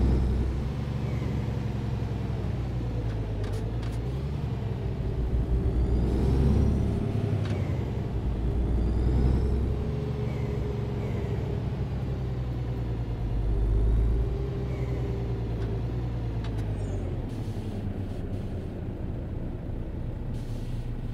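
Rain patters lightly on a windscreen.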